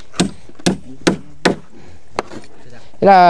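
A man knocks on wood with sharp blows.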